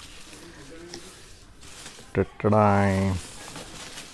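Leaves rustle as a hand sorts through them.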